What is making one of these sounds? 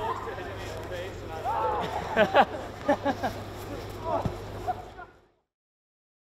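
Young men shout and laugh excitedly outdoors.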